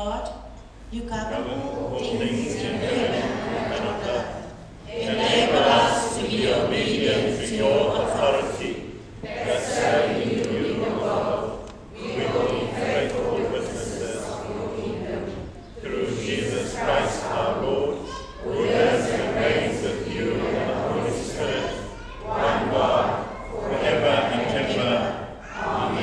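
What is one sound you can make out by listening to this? A congregation of men and women recites together in unison.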